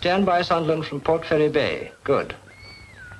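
A man speaks calmly into a telephone.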